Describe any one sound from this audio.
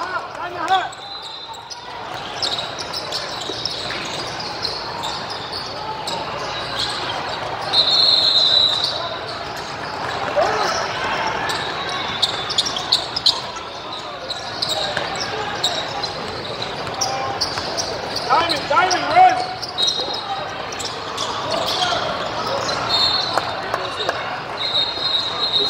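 Sneakers squeak sharply on a court floor in a large echoing hall.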